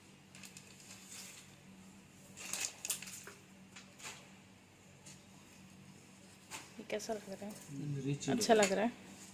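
Fabric rustles as it is unfolded and lifted.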